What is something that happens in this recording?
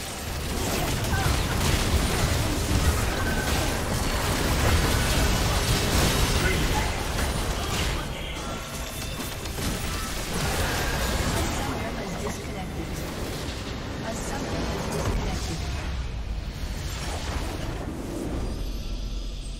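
Spells and attacks crash and explode in a game battle.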